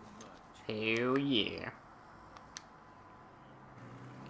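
A lock clicks as it is picked.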